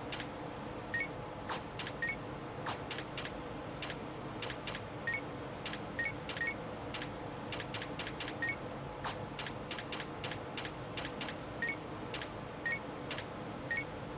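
Short chimes sound when items are picked.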